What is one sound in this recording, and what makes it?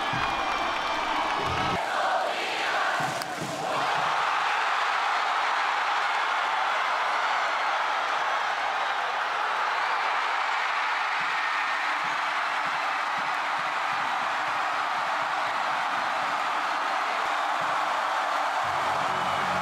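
A large stadium crowd cheers and roars loudly and steadily.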